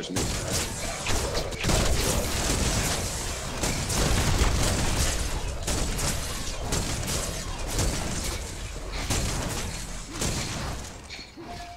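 Gunfire and energy blasts crackle rapidly.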